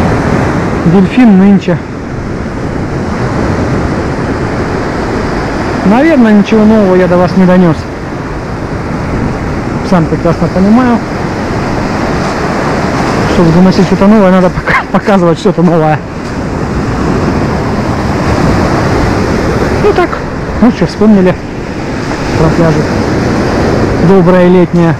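Waves break and wash over a pebble shore.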